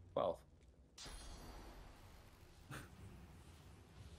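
A magic spell bursts with a bright whooshing crackle.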